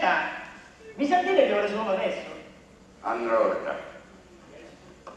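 A man answers calmly through a loudspeaker in a large room.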